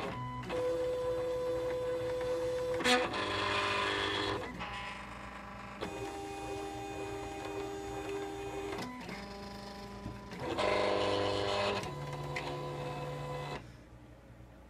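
A cutting machine whirs as its carriage moves back and forth.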